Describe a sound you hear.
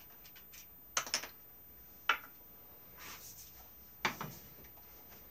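Wood knocks sharply a few times.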